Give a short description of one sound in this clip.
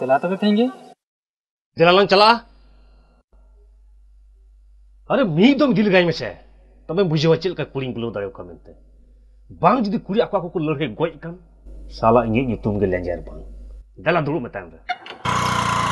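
A second man answers in conversation close by.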